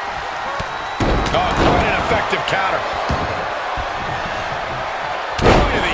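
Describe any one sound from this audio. Bodies thud heavily onto a wrestling ring.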